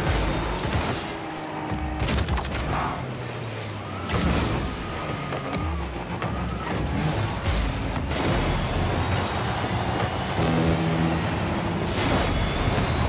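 A ball thuds when struck by a car.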